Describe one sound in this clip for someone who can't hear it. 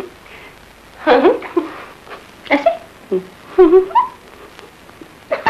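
A young woman speaks tearfully close by.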